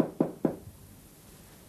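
Knuckles knock on a wooden door.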